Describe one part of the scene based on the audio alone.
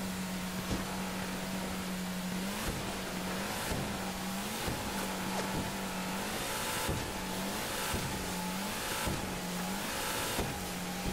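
A boat hull slaps against waves with repeated thumps.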